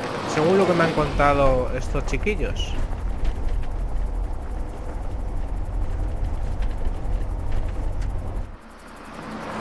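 A car engine rumbles low and steady.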